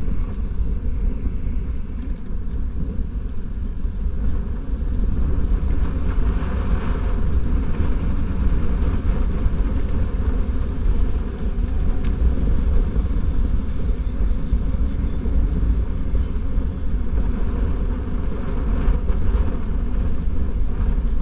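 Bicycle tyres roll over asphalt with a steady hum.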